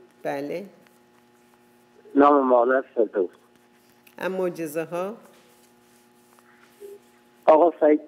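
A woman speaks with animation into a close microphone, in short bursts with pauses.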